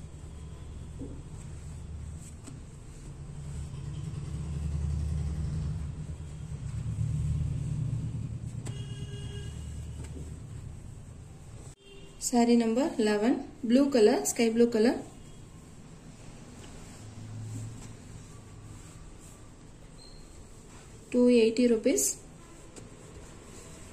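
Hands rustle and smooth cloth.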